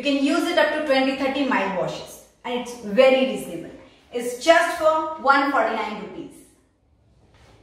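A young woman speaks clearly and calmly into a close microphone.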